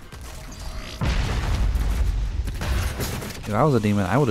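Heavy gunfire blasts repeatedly.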